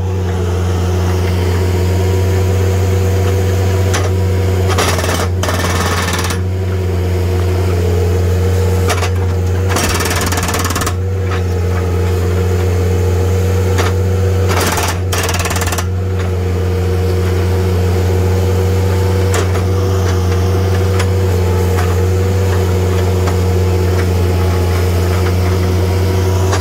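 A hydraulic hammer pounds rapidly on concrete.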